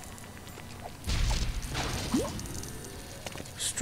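Blocks explode with loud bursts and scattered clinks.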